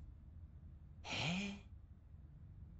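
A man exclaims in a rising, surprised voice.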